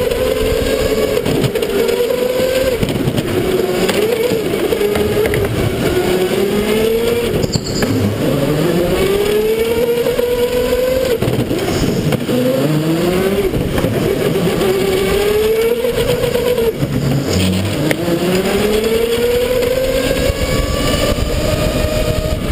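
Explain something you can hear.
Other go-kart engines buzz nearby as they pass.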